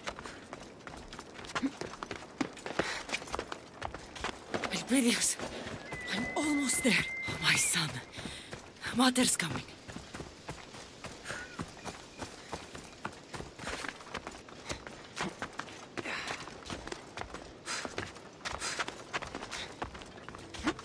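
Hands and feet scrape and knock on rock during a climb.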